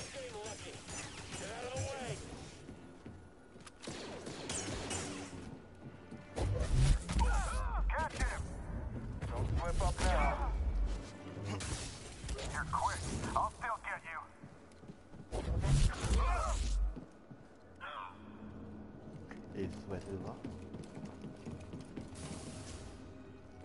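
A lightsaber hums and swooshes in fast swings.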